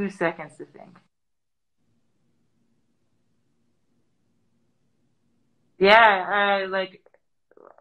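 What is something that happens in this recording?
A young woman speaks through an online call, in short bursts with pauses.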